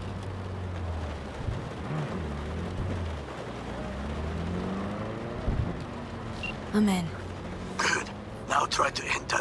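Rain patters steadily on a car's windscreen.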